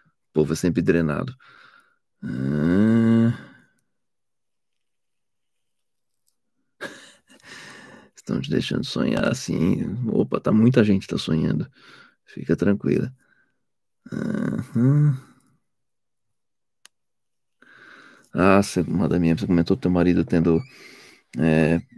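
A middle-aged man talks calmly and thoughtfully close to a microphone, with pauses.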